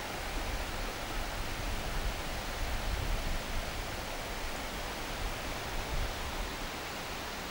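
A stream of water rushes steadily over rocks.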